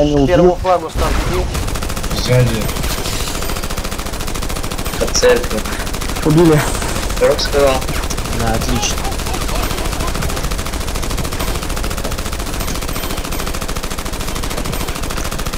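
Gunfire rattles in quick bursts.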